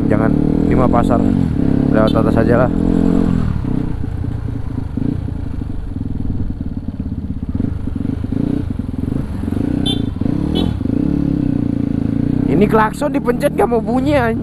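A motorcycle engine rumbles and revs up close.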